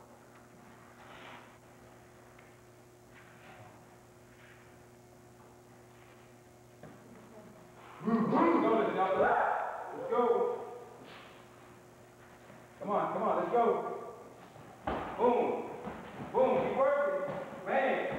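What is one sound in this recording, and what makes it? Fighters' feet thud and shuffle on a padded mat.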